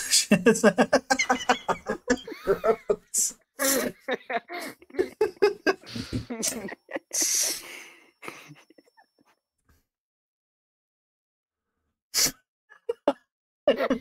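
A man laughs loudly into a microphone.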